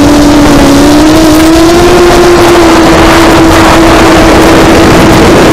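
A small electric motor whines steadily at high speed.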